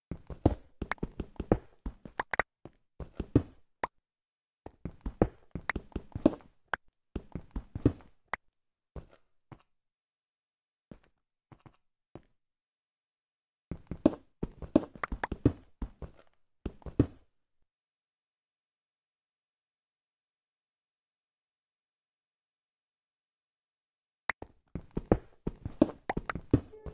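A pickaxe chips at stone in quick, repeated taps.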